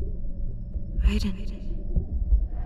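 A man whispers softly, close by.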